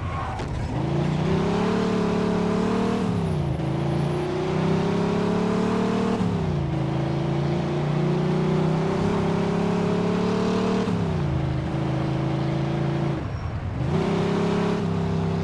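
A car engine roars loudly, revving up and dropping as the gears shift.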